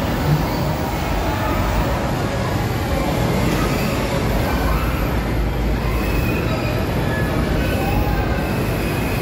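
A ride machine rumbles and whirs as seats swing up and down.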